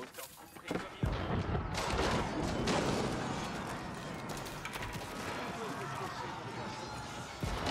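Swords clash and soldiers fight in a busy battle.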